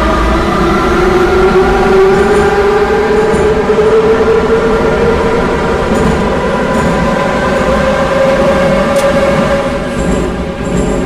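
An electric train motor whines, rising in pitch as it speeds up.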